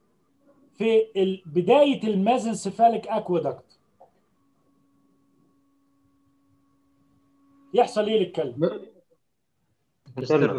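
An older man lectures calmly over an online call.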